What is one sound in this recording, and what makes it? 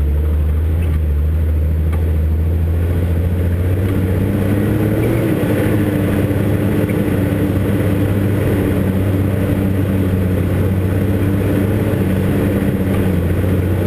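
A vehicle engine hums steadily at low revs, close by.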